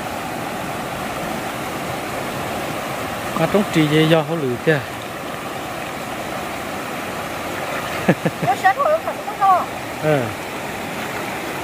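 Water splashes around a woman's legs as she wades.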